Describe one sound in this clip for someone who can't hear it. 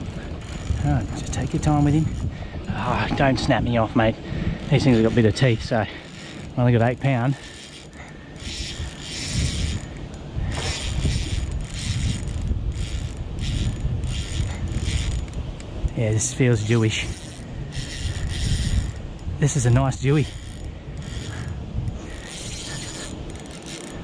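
Wind blows against the microphone.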